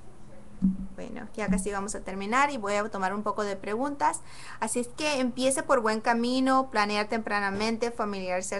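A woman speaks with animation, close to a microphone.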